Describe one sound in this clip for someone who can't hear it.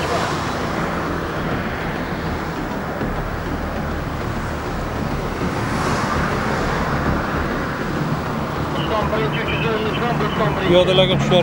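Traffic hums steadily nearby.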